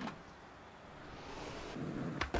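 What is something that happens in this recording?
Skateboard wheels roll over smooth pavement.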